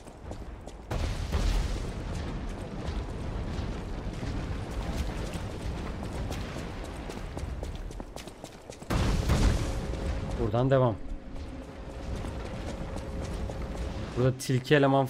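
Footsteps scrape on rough ground.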